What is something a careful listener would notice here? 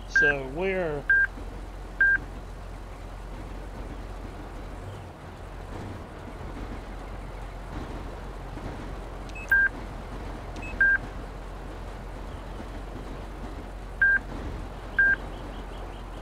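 An electronic device beeps in short tones now and then.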